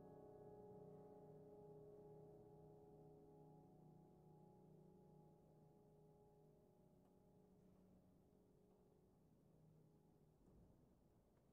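A piano chord rings out and slowly fades away.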